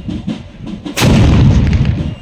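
A loud firework blast booms outdoors and rumbles away.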